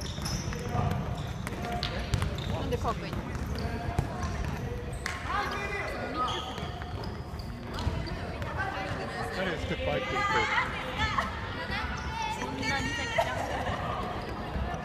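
Children shout and call out in an echoing indoor hall.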